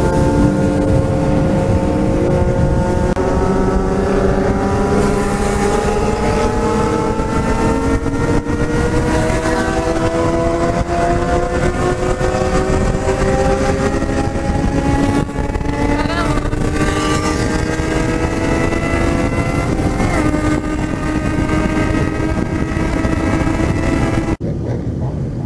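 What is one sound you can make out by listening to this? A motorcycle engine roars and slowly rises in pitch as it speeds up.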